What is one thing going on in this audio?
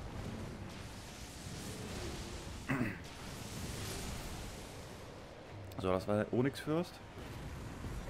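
Swords clash and strike with heavy blows.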